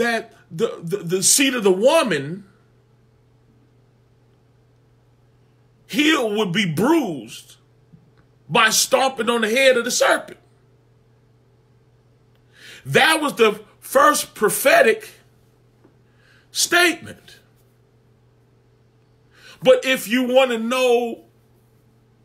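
A man speaks with animation close to a microphone, in bursts with pauses.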